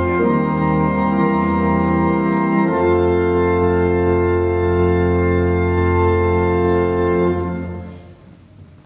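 An organ plays loud sustained chords, then stops.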